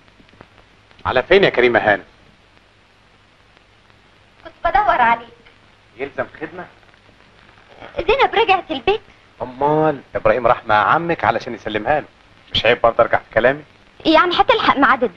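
A young woman speaks nearby in a startled voice.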